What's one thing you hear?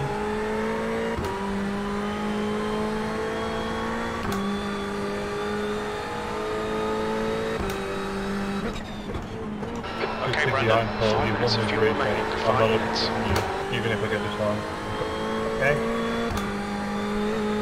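A race car engine drones steadily, rising in pitch and dropping with each gear change.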